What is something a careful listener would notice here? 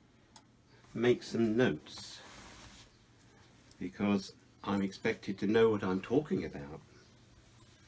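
An elderly man speaks calmly close by.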